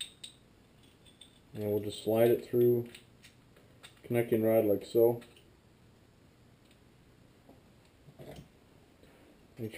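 Metal engine parts click and tap softly as they are handled.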